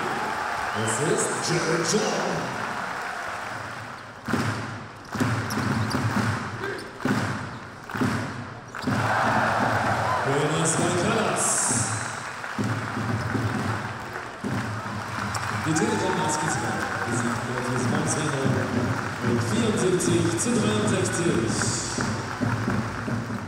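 A large indoor crowd cheers and shouts in an echoing arena.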